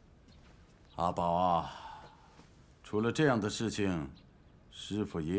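A middle-aged man speaks in a strained, emotional voice nearby.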